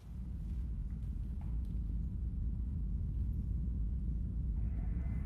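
Small objects clink softly on a plastic tray.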